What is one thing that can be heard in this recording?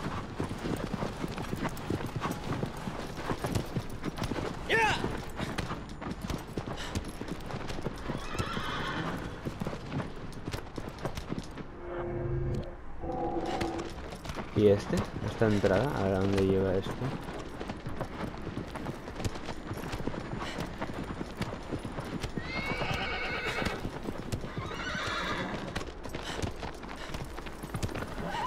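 A horse gallops with rapid hoofbeats on sandy ground.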